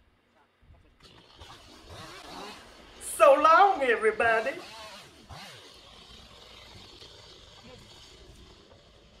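A hedge trimmer buzzes as it cuts branches.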